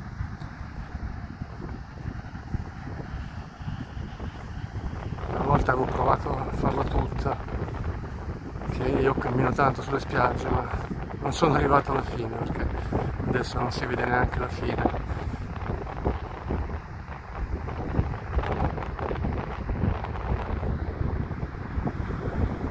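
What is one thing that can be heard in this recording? Wind blows hard and buffets loudly outdoors.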